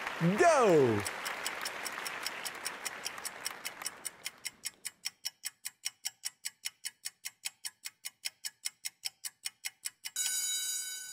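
A clock ticks steadily and quickly.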